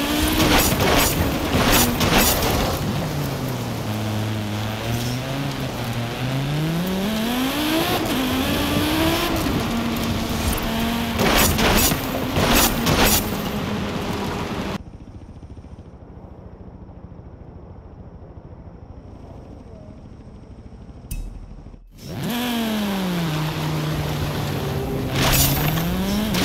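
Crates smash with sharp cracks as a car drives through them.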